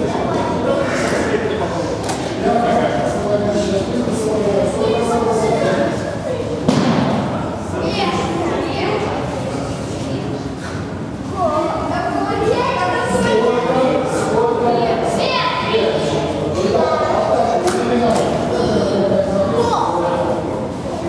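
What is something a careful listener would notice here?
A man speaks calmly, giving instructions in an echoing hall.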